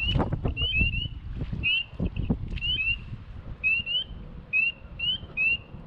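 Dry reeds rustle and crackle close by.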